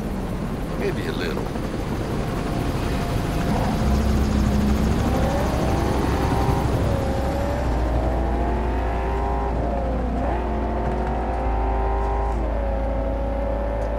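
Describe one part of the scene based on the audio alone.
A car engine roars and revs up through the gears.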